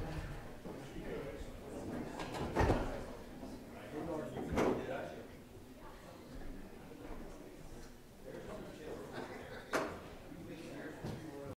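Several men murmur quietly to one another nearby.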